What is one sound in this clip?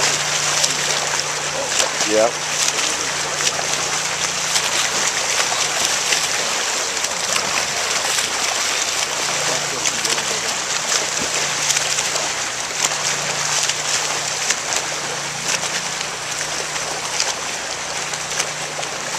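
Swimmers splash steadily through the water.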